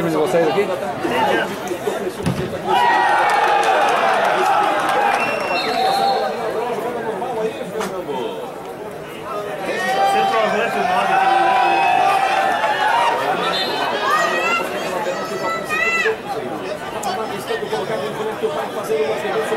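A large crowd murmurs and calls out from the stands outdoors.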